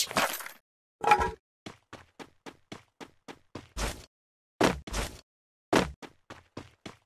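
Footsteps run across grass.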